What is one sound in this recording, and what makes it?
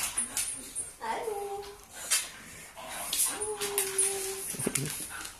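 A dog whines briefly.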